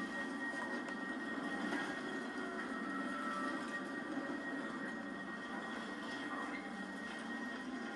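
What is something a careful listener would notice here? Flames crackle and roar from a game through a loudspeaker.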